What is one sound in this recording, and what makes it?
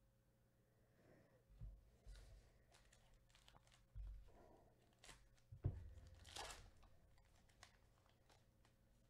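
A foil card pack crinkles as gloved hands tear it open.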